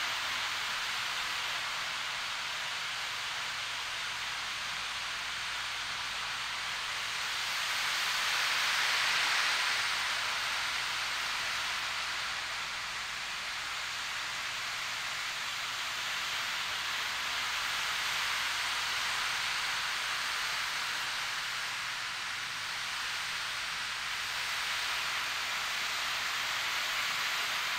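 Small beads roll and swish steadily across a wooden frame drum, like ocean waves.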